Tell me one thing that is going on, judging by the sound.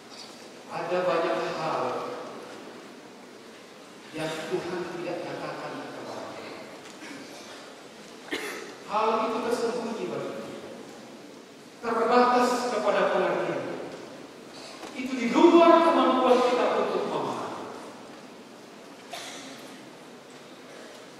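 A man speaks with animation into a microphone, in phrases that echo through a large hall.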